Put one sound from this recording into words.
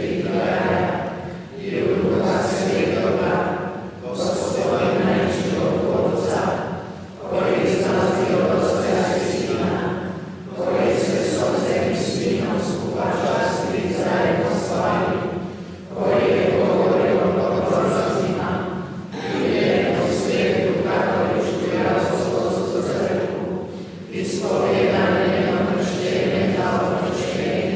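An elderly man speaks slowly and solemnly into a microphone in a large echoing hall.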